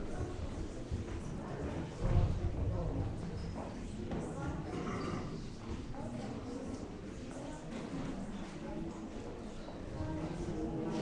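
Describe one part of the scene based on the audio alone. A man chants and sings in a large echoing hall.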